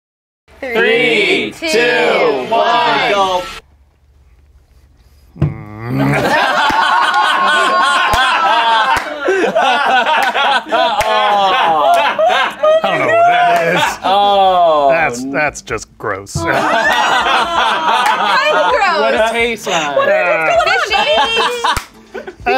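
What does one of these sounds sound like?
A group of young men and women laugh loudly together.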